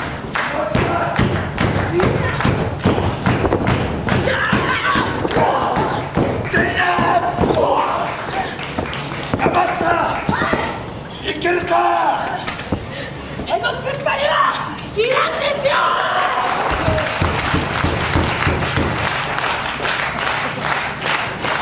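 A crowd claps in rhythm in a large echoing hall.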